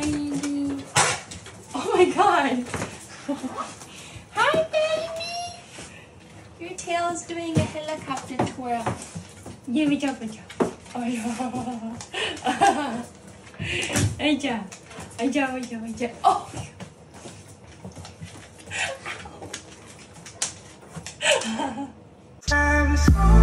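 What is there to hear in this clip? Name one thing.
A young woman talks to a dog close by in a high, playful voice.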